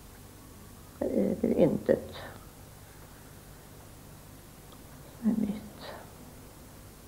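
An elderly woman speaks quietly and haltingly, close by.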